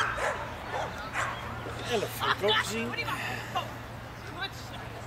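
A woman calls out excitedly to a running dog outdoors.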